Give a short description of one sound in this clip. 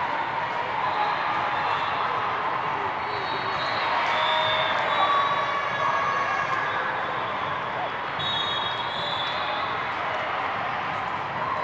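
Young women on a team cheer and call out to each other.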